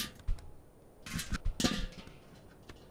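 A metal bin tips over and clatters onto the ground.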